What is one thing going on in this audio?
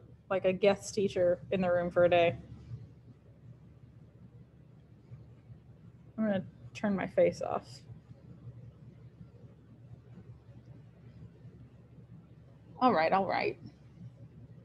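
A woman speaks calmly in short bursts over an online call.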